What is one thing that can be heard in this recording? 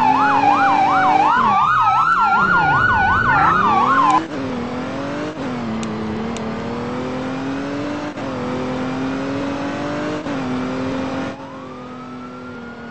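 A police car engine drones as it drives.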